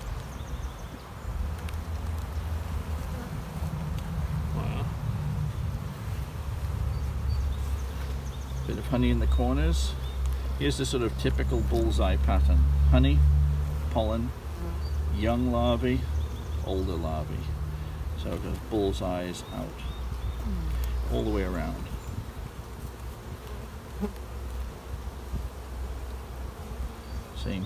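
Bees buzz in a steady, low hum close by.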